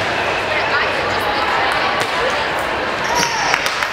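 A volleyball is struck with a hand.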